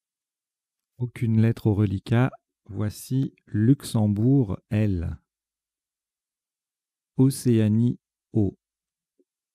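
A man speaks calmly into a microphone, in short bursts.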